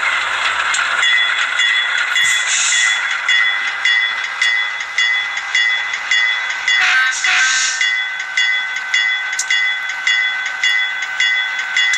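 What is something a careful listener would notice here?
Model train wheels click rhythmically over the rail joints.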